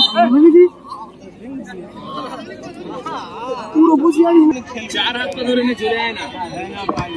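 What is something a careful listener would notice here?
A large crowd of men shouts and cheers loudly outdoors.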